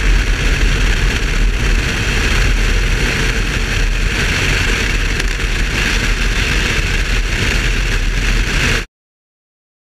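Wind rushes past a fast-moving car.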